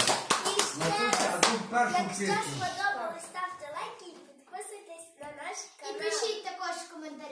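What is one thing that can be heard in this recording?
A young girl speaks with animation, close by.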